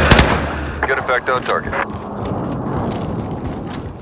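A rifle clicks and rattles as it is reloaded.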